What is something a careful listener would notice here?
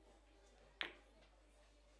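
A cue strikes a ball with a sharp click.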